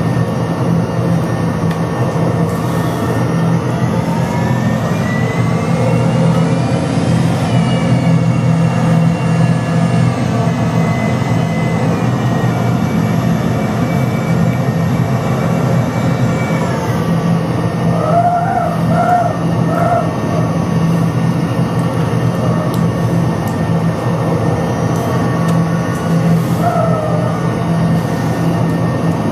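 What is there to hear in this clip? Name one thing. A jet engine hums and whines, its pitch rising and later falling.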